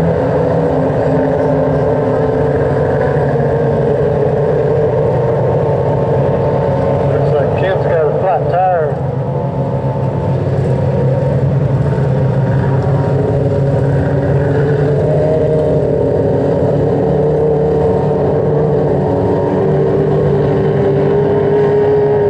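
Race car engines roar loudly outdoors.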